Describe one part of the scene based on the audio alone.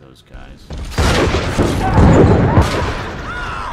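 Gunshots blast loudly in quick bursts.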